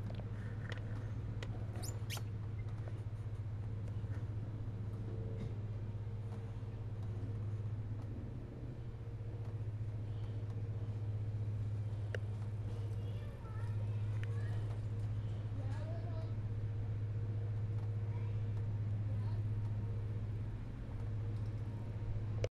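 A dog pants softly close by.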